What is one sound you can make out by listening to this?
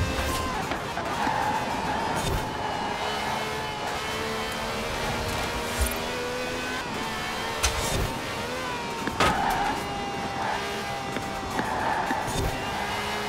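Tyres screech as a car brakes into bends.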